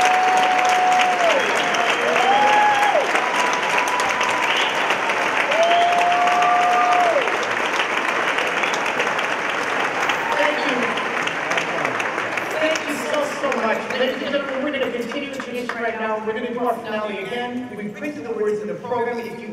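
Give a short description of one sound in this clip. An orchestra plays in an echoing hall.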